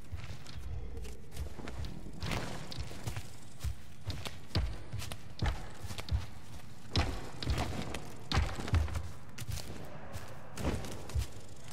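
Small footsteps patter and scrape on stone.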